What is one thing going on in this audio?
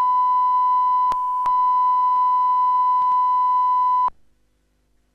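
A steady high-pitched test tone sounds, then cuts off abruptly.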